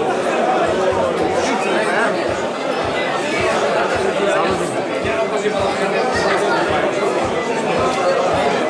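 A crowd of men chatter loudly nearby.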